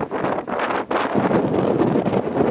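Waves churn and splash against a ship's hull.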